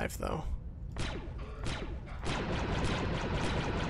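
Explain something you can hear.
A blaster rifle fires a rapid burst of shots.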